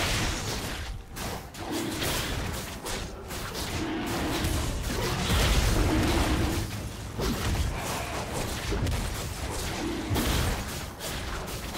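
Magic blasts and hits crackle and boom in a busy fight.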